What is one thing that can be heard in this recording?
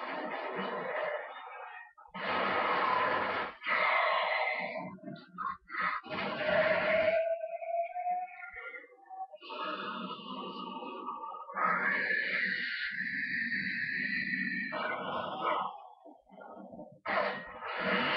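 Gunfire and game sounds play through a television speaker.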